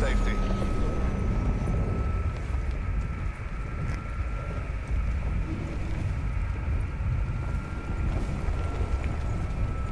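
Wind rushes loudly past during a freefall.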